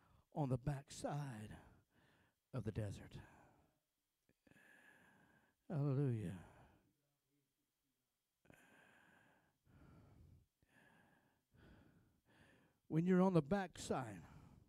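A man speaks into a microphone in a large echoing room.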